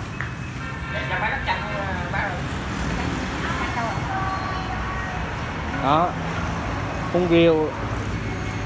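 An elderly woman talks nearby.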